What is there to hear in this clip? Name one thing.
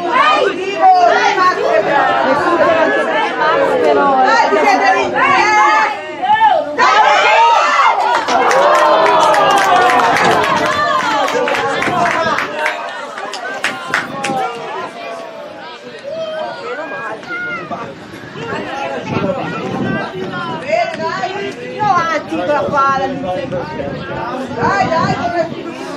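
Young players shout and call out excitedly across an open field.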